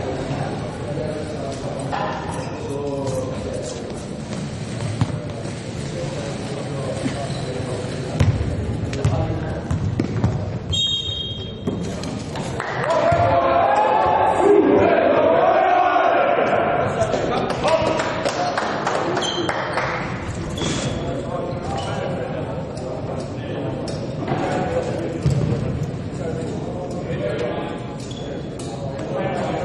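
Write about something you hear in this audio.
Young players chatter and call out in a large echoing hall.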